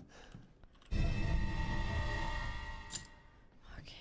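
A metal key jingles and rattles.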